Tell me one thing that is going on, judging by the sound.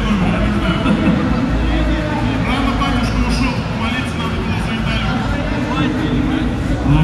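A man speaks into a microphone, heard through a loudspeaker in a large echoing hall.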